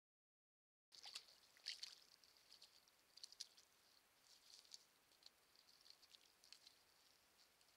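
A beaver rustles through dry twigs and reeds.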